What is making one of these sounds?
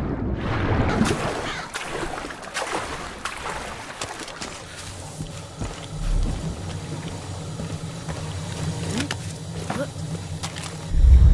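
Footsteps crunch over rocks and gravel.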